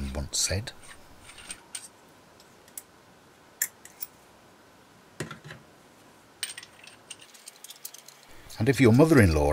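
A metal tool clicks and clinks as it is handled up close.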